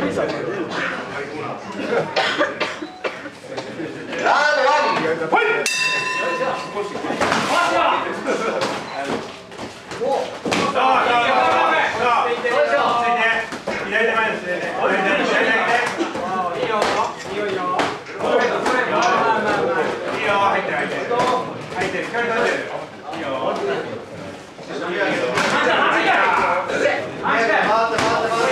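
Gloved punches and kicks thud against pads and bodies.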